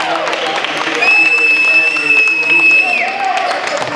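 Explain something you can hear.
A referee blows a long, shrill whistle.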